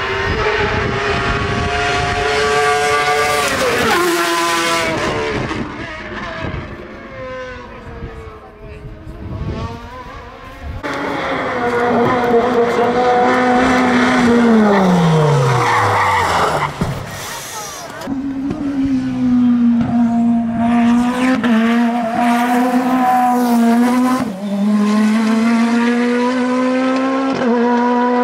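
Racing car engines roar and rev hard as they speed past.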